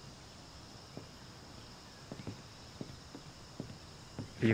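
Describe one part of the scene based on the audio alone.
Footsteps knock on a hard walkway.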